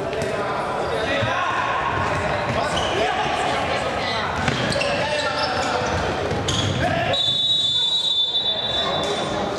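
Young men shout to each other in an echoing hall.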